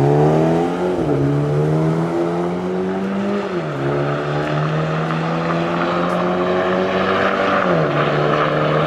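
A car engine's pitch drops suddenly at each gear change.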